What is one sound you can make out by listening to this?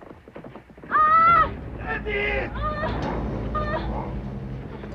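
A young woman cries out as she falls to the ground.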